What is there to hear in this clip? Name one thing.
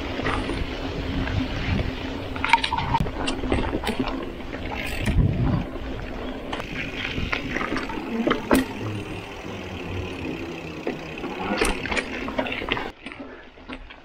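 Bicycle tyres roll and crunch along a dirt trail.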